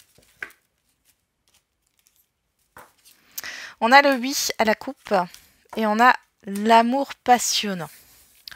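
Playing cards are laid down on a table with soft taps and slides.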